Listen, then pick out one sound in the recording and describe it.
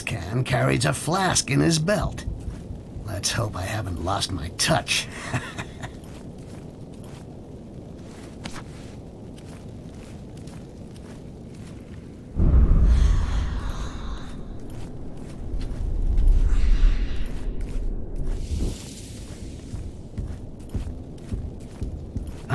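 Footsteps shuffle softly on stone.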